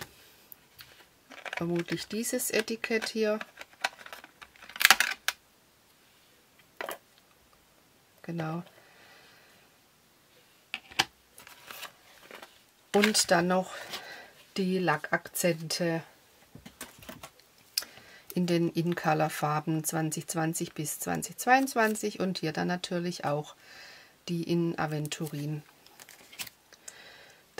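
Paper and plastic packaging rustle and crinkle as hands handle them.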